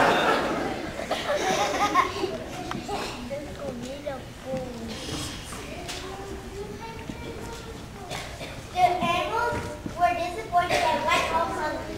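A young girl reads aloud from a distance in an echoing hall.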